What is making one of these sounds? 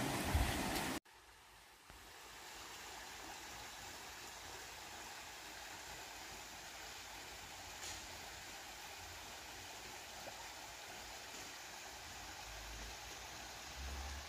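A stream babbles softly in the distance.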